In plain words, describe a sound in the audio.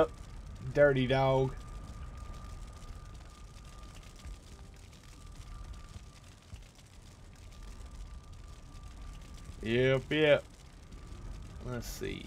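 A middle-aged man speaks in short, animated bursts close to a microphone.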